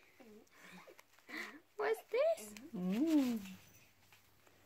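A small dog whimpers and whines softly.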